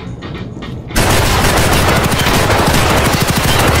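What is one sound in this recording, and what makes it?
A shotgun fires loudly.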